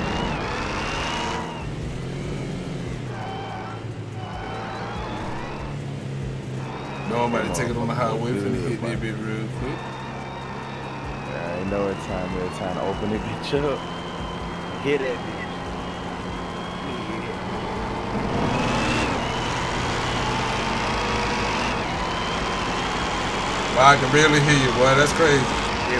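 A car engine hums steadily and revs higher as the car speeds up.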